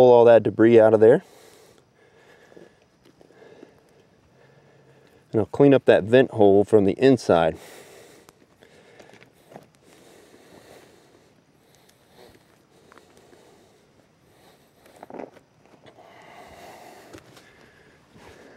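Hands scrape and dig in loose soil.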